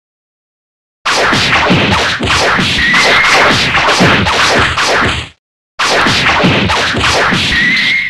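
Cartoon punches and kicks land with quick thuds and whooshes.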